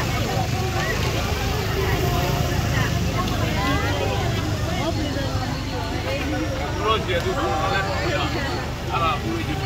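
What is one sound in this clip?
A motorbike engine hums slowly past.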